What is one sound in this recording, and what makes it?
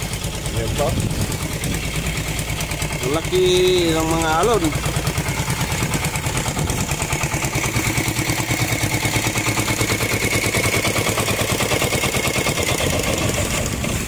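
A boat engine chugs steadily close by.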